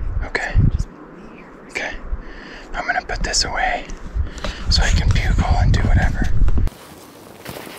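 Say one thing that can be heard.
A man speaks quietly and calmly outdoors, close by.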